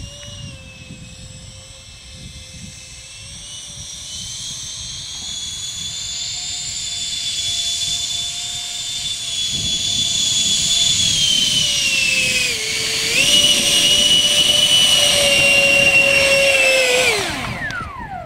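A model jet's turbine engines whine loudly and grow louder as the model taxis closer.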